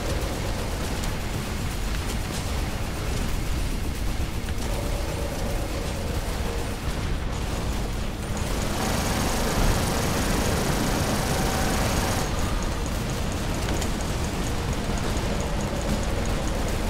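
A giant robot's heavy footsteps thud and clank.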